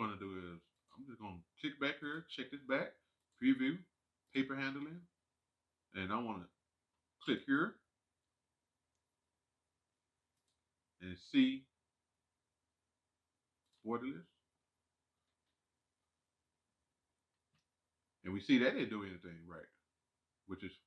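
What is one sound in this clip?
A man talks calmly into a microphone, with pauses.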